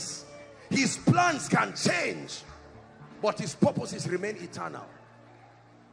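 A man preaches forcefully into a microphone, with pauses between phrases.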